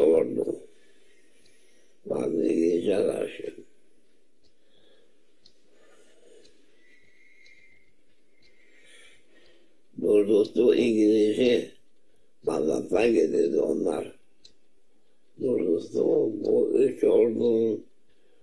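An elderly man speaks calmly and slowly, close by, in short phrases with long pauses.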